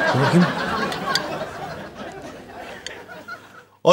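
Cutlery clinks on plates.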